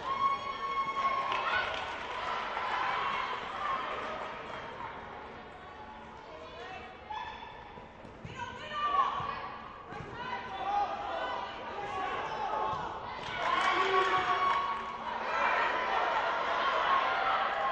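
Young women shout to each other across a large echoing hall.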